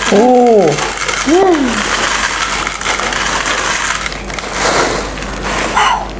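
Small hard candies pour and rattle into a glass dish.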